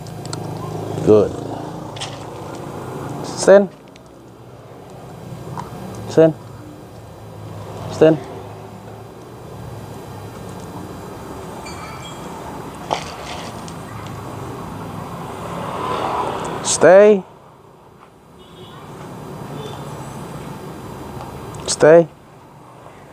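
A man calls out loudly in short bursts, close by, outdoors.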